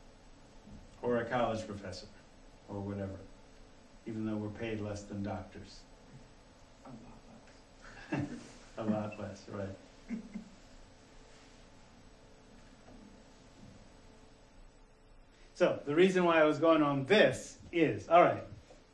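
A middle-aged man speaks to a room in a calm, lecturing voice, with pauses.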